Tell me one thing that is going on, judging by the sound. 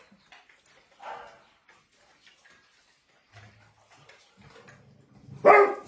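A dog's paws tap on a hard floor.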